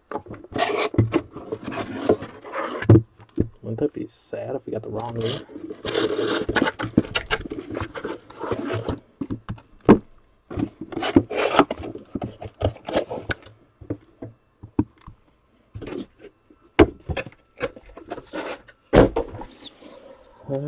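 Boxes wrapped in plastic rustle and crinkle as hands handle them.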